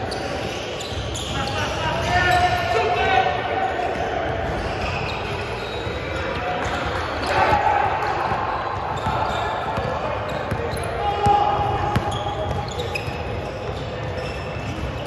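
Sneakers squeak sharply on a wooden floor in a large echoing hall.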